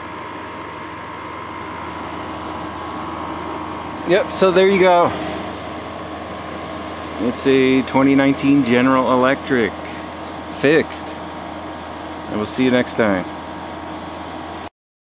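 An air conditioner hums steadily close by.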